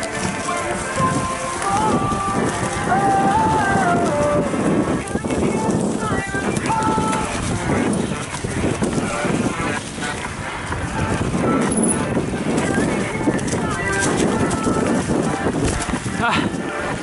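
Bicycle tyres crunch over dry leaves and dirt.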